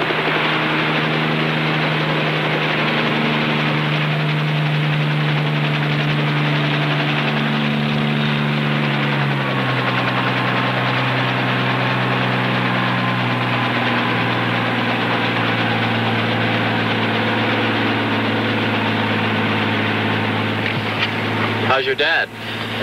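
A helicopter engine drones steadily.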